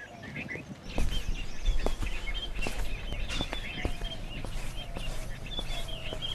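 Footsteps tap on concrete.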